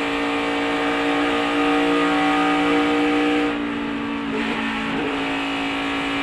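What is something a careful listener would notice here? Wind rushes past a speeding race car.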